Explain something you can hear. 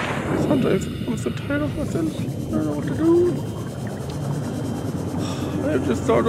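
A small underwater vehicle's motor hums steadily.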